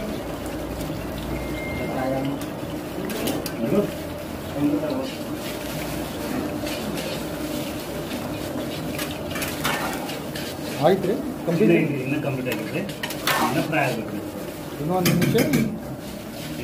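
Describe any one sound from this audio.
Oil sizzles and bubbles steadily as food deep-fries.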